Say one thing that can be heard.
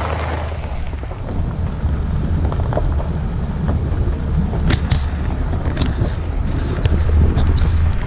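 Tyres crunch and rattle over a gravel road.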